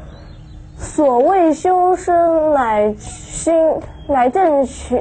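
A young boy recites a text aloud in a steady, sing-song voice.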